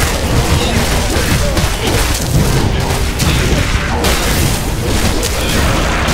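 Weapons clash and spells burst in a rapid video game battle.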